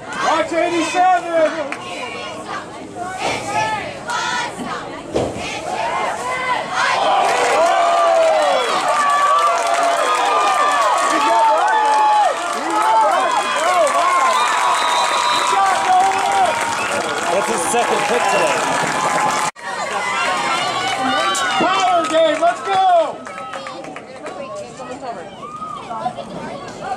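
A crowd of spectators cheers and shouts loudly outdoors.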